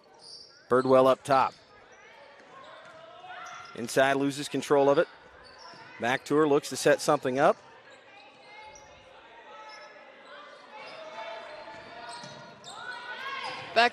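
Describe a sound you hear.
A crowd murmurs in an echoing gym.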